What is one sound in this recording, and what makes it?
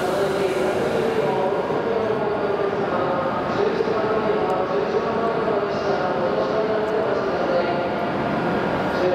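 A standing high-speed train hums steadily with a low electric drone.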